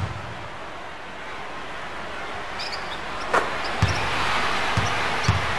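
A crowd roars in a large arena.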